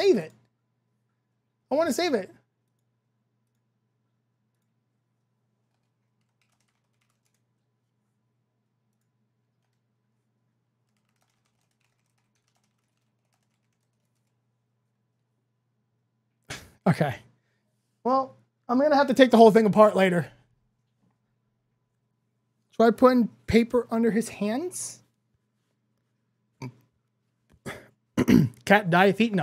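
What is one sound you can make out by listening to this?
A man speaks with animation into a close microphone, with long pauses.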